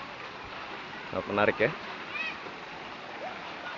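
Water splashes as children slide into a pool.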